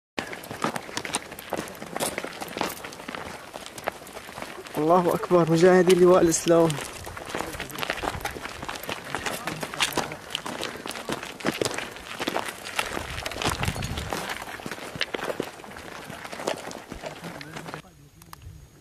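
Footsteps crunch on stony ground.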